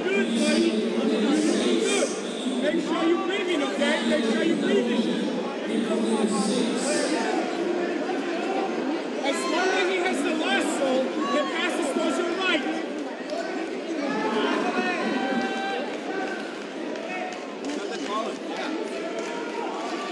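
Spectators shout and call out instructions in a large echoing hall.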